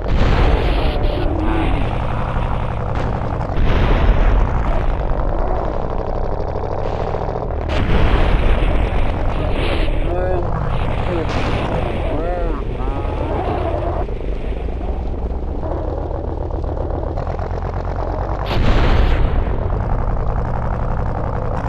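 A big truck engine roars and revs.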